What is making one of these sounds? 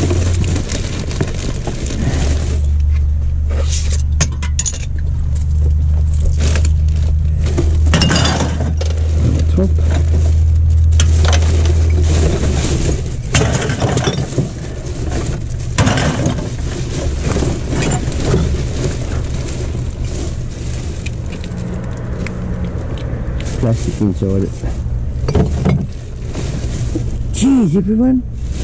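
Empty cans clink and rattle.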